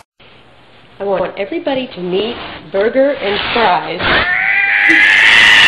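A cat yowls loudly over and over, its cries rising and falling.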